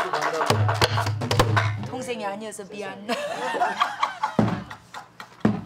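A barrel drum is struck with a stick in a steady beat.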